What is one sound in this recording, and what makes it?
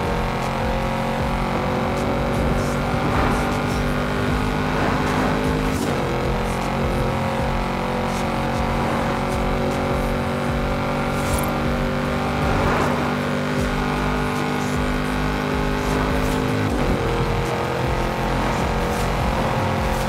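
A car engine roars steadily at high speed, rising in pitch as it accelerates.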